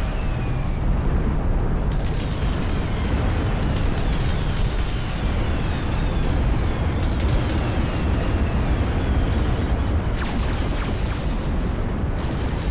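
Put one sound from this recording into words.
Energy weapons zap and crackle in quick bursts.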